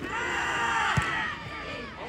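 A football is kicked with a sharp thump.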